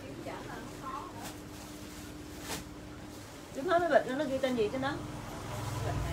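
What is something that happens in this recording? Fabric rustles as clothing is handled.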